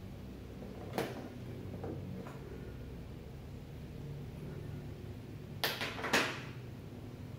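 Wire plugs click as they are pushed into place.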